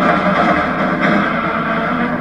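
A car crashes into a barrier with a loud thud.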